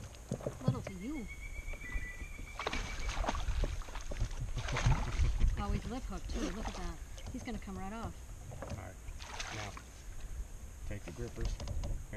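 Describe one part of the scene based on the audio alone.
A woman talks and laughs nearby.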